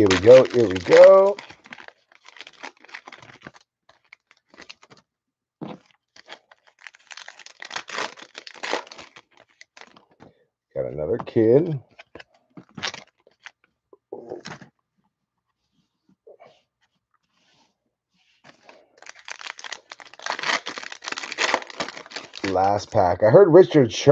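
Card wrappers crinkle and tear as packs are opened.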